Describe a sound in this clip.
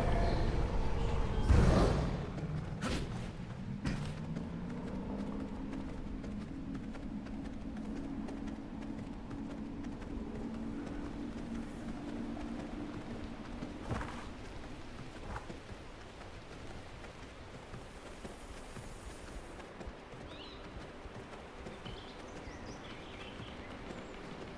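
Footsteps tread steadily along a dirt path.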